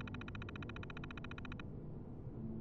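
Rapid electronic ticking chatters as text prints.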